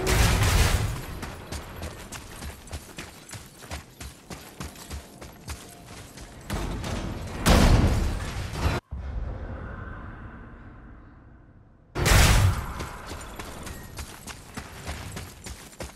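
Heavy footsteps thud quickly on hard ground.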